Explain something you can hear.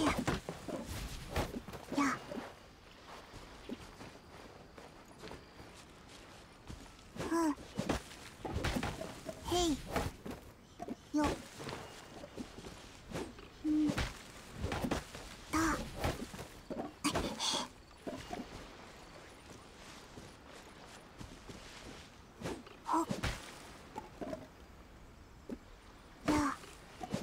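A sword slashes with a sharp whoosh and chime.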